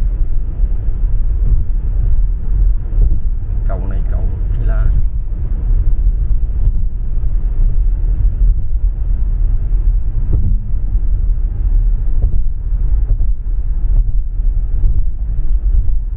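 A car's engine hums and tyres roar steadily on the road, heard from inside the car.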